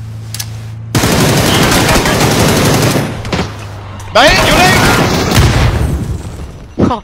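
Gunfire rattles in loud rapid bursts.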